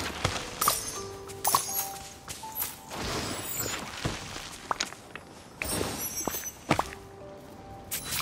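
Short game chimes ping.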